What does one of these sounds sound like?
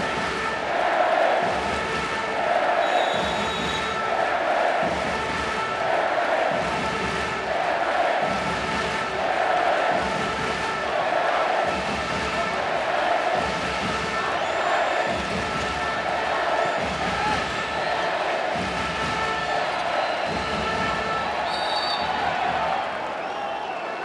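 A large crowd in an echoing arena chants and claps in a steady rhythm.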